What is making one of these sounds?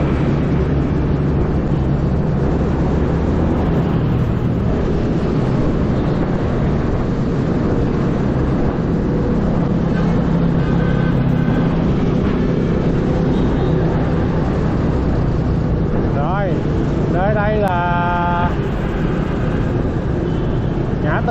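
Motorbikes and traffic rumble along a busy road.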